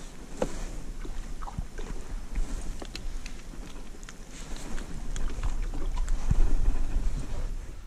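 A fish flaps and thumps against a plastic board.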